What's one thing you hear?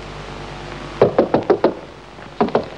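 A hand knocks on a wooden door.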